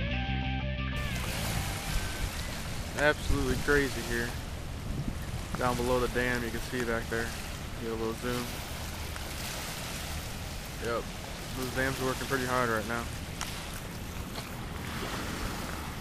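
Rushing water roars steadily nearby.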